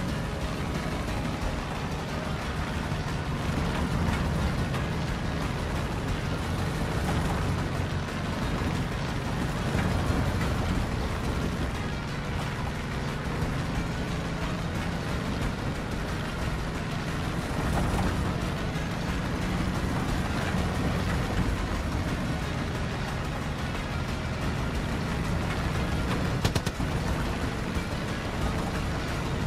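Wind rushes past a plane in flight.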